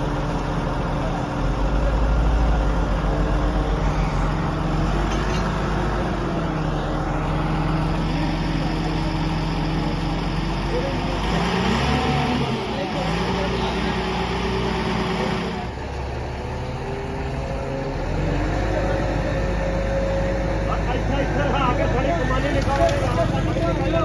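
A crane engine rumbles steadily.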